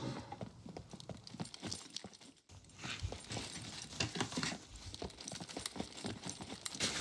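Footsteps run quickly over hard concrete.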